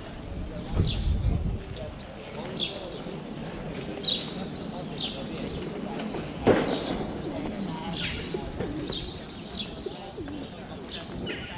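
Distant voices murmur outdoors in an open square.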